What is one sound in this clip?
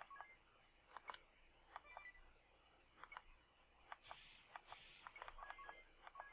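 Short electronic menu blips sound again and again.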